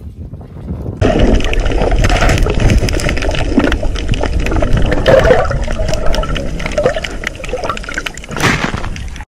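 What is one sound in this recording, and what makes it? Muffled water rushes and rumbles underwater.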